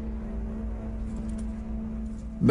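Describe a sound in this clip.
Handcuffs clink faintly.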